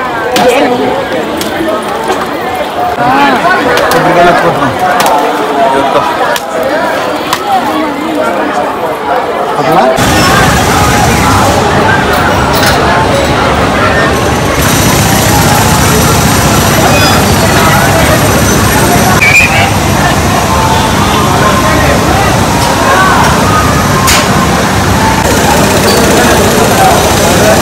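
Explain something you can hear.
A crowd of people talks and murmurs nearby.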